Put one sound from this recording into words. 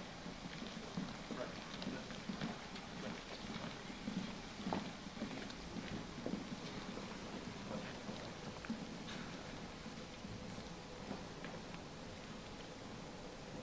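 Footsteps march across a hard floor.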